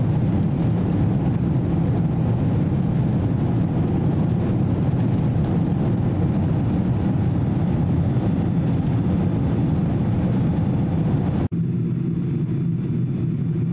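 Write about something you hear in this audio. A jet engine roars steadily inside an airliner cabin.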